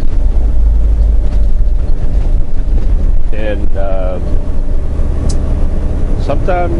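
A truck engine rumbles steadily, heard from inside the cab.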